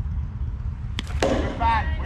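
A metal bat cracks sharply against a ball.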